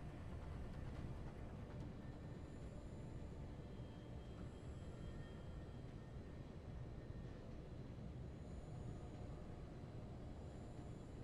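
A large fan hums with a steady low drone.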